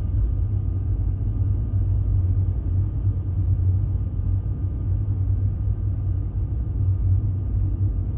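A vehicle's engine rumbles low and steady, heard from inside.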